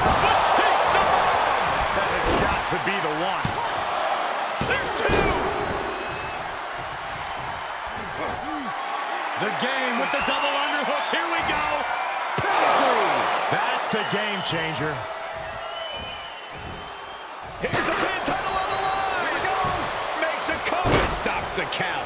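Heavy bodies thud onto a wrestling ring mat.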